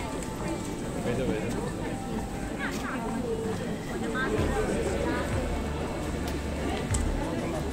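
Footsteps shuffle on a stone pavement.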